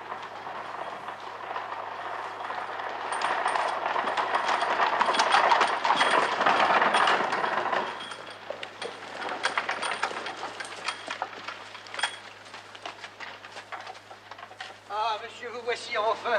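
Carriage wheels rumble over gravel.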